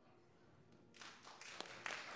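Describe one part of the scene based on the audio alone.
People applaud and cheer.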